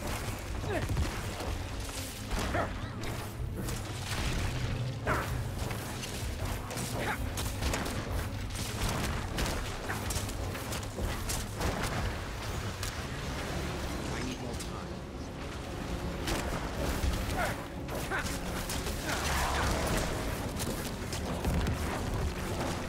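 Spells and blows crash and thud in quick bursts.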